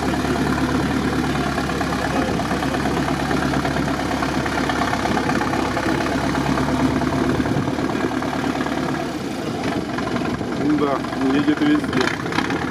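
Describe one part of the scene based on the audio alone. A truck engine rumbles and labours loudly nearby.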